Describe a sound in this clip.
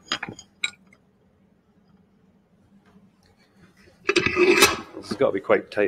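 A metal vise clanks and rattles as its handle is turned.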